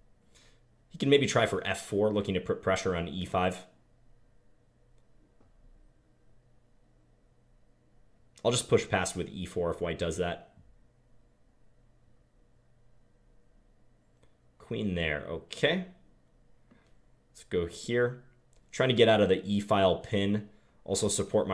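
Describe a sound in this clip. A man talks calmly into a close microphone, in bursts with pauses.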